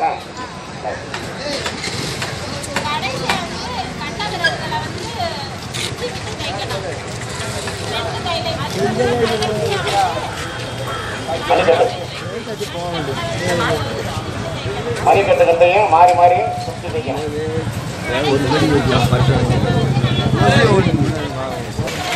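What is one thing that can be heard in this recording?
A crowd of men and women talk over one another outdoors.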